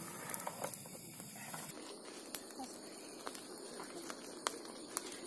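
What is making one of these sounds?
Fires crackle and pop steadily outdoors.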